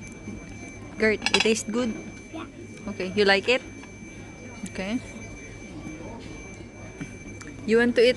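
A young child talks nearby in a high voice.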